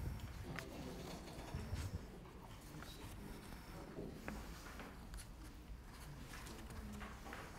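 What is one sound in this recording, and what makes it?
Paper sheets rustle in a woman's hands.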